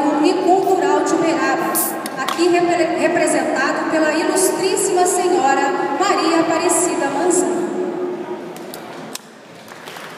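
A crowd sings together in a large echoing hall.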